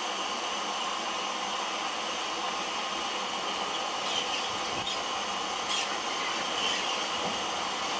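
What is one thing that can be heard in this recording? A distant steam locomotive chugs closer.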